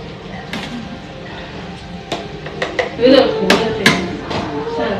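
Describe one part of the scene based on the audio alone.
Metal tongs clack against a tray.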